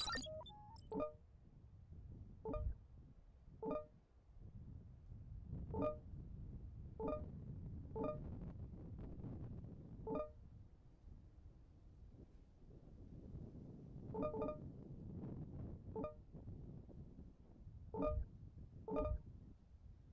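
Short pitched menu clicks chime again and again.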